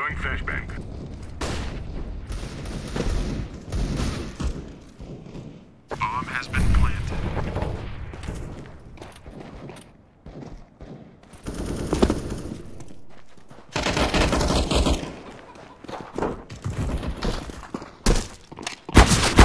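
Footsteps run quickly over hard stone.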